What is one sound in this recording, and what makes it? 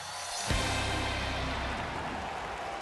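Pyrotechnics burst with a deep whoosh.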